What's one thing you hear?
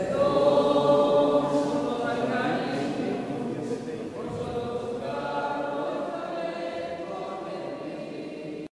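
A crowd of men and women sings together slowly in a large echoing hall.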